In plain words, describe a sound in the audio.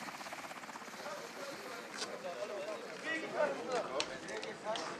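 Men talk outdoors nearby.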